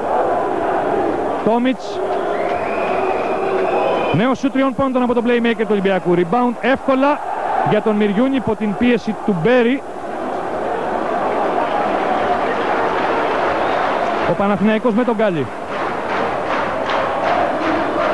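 A large crowd roars and cheers in an echoing hall.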